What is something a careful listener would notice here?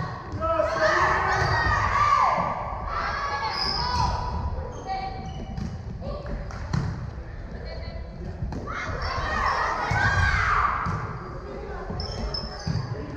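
Girls shout and call out in a large echoing gym.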